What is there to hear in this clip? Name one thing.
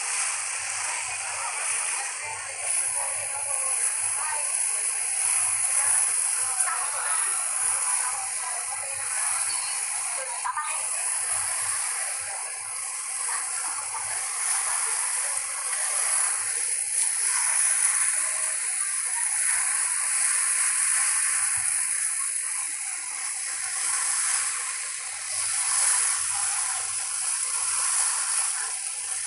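Water splashes and laps against the side of a moving boat.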